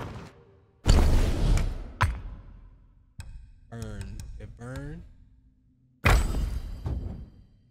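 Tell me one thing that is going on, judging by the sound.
Game menu clicks and chimes sound as items are selected.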